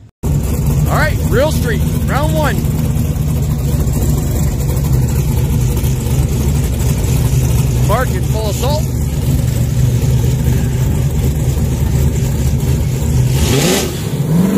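A big engine idles with a deep, loud rumble.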